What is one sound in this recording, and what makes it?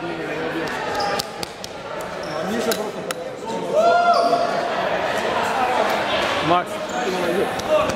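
Teenage boys chatter and shout loudly in a large echoing hall.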